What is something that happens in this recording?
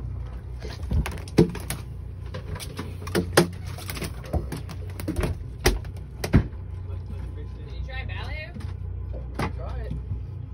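A fish flaps and thumps against a hard deck.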